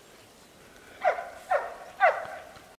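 A dog barks sharply three times.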